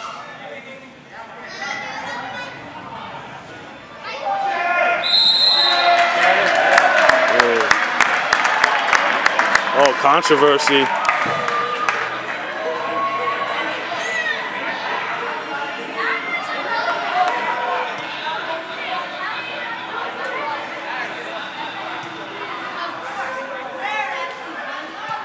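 Adults and children chatter nearby.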